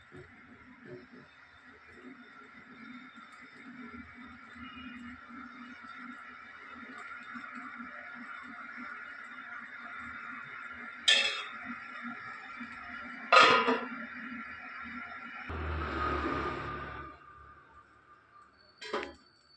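Batter sizzles steadily in a hot pan.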